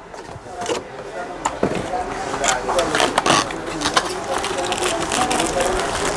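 Cardboard packaging rustles and scrapes as it is opened.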